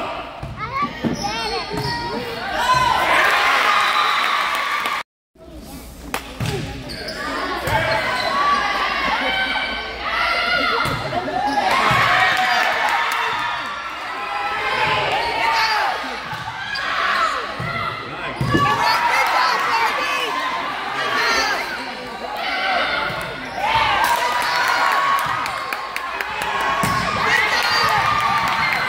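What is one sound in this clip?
A volleyball is hit with a sharp slap.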